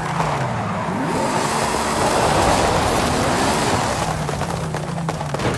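Tyres screech as a car skids and drifts.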